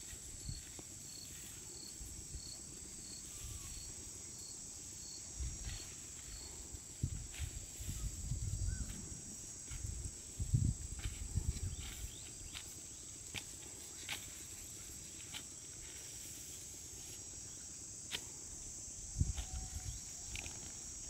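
A wooden stick scrapes and thuds into damp soil.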